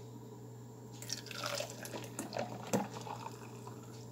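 A thick liquid pours and splashes into a cup.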